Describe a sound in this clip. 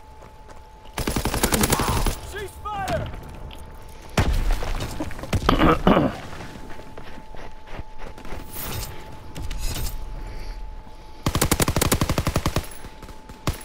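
A submachine gun fires loud rapid bursts.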